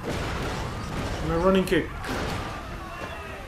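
A car explodes with a loud boom.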